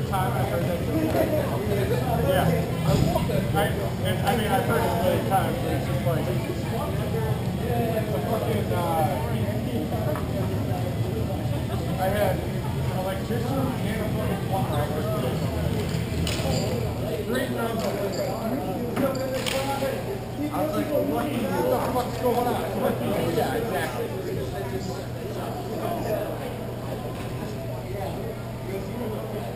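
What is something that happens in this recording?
Skaters' wheels roll and scrape on the floor of a large echoing hall.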